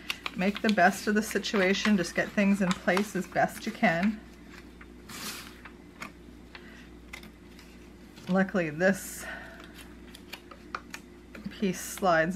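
Stiff card rustles as hands handle it.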